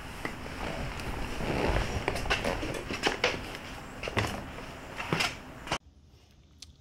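A man shuffles out of a car seat with rustling and knocking.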